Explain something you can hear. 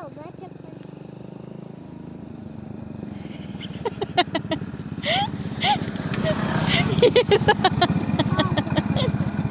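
A motorcycle engine putters steadily as the bike approaches and idles close by.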